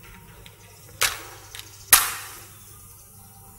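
A match scrapes and flares as it is struck.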